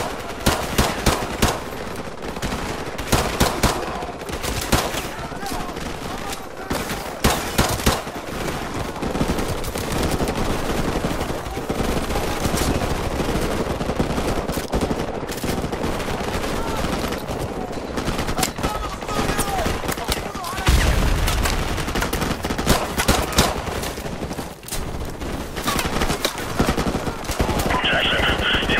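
Gunfire crackles and echoes in the distance.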